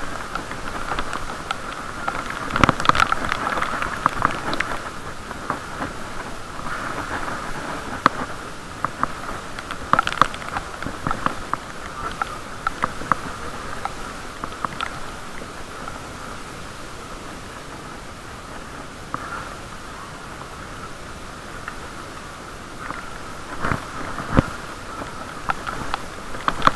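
A bicycle rattles and clicks over paving stones.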